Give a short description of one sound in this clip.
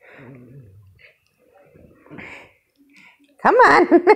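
A small dog growls.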